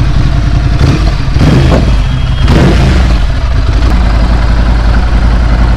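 A motorcycle engine idles with a steady, deep rumble close by.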